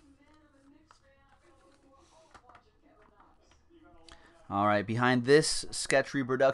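Trading cards rustle and slide as hands shuffle them.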